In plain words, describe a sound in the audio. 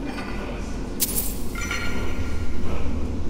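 Coins clink and jingle as they are picked up.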